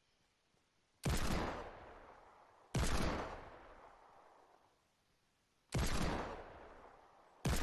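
A heavy rifle fires single loud shots that echo and fade.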